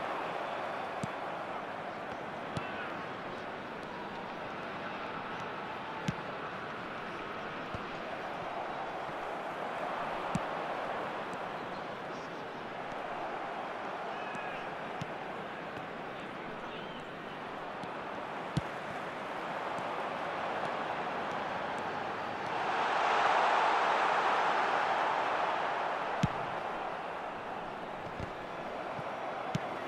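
A football is kicked with sharp thuds now and then.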